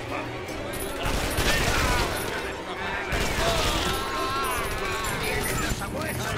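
A heavy gun fires rapid bursts.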